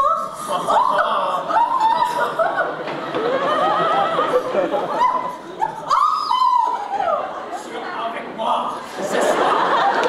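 A man sings loudly on a stage in a large hall.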